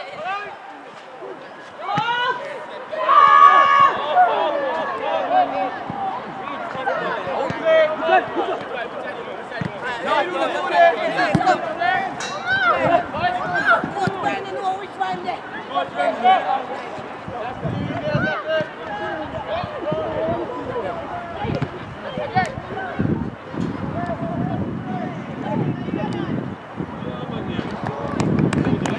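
Players shout and call to each other across an open field.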